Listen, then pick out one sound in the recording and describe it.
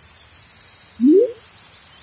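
A short rising electronic tone sounds.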